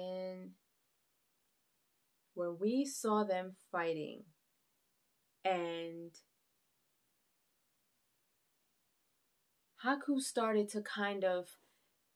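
A young woman speaks expressively in short bursts with pauses, close to the microphone.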